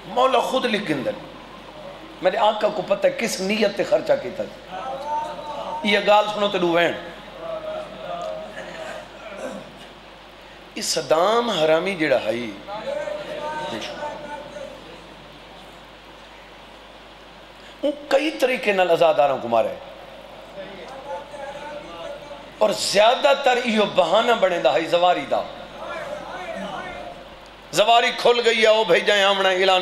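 A man preaches passionately into a microphone, his voice ringing through loudspeakers with echo, in bursts with pauses.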